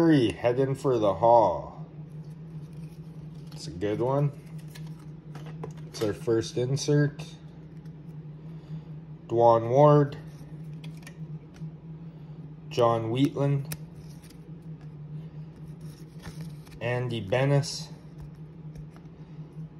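Trading cards slide and rustle in hands nearby.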